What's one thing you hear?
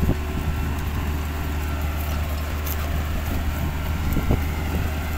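Plough discs scrape and churn through dry soil.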